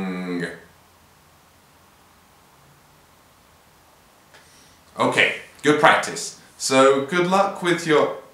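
A young man speaks calmly and close by, with pauses.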